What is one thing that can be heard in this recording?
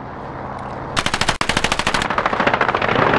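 A submachine gun fires a short, rapid burst close by.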